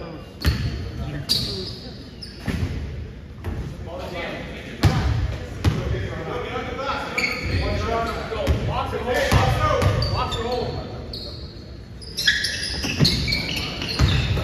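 Voices of young players chatter in an echoing gym.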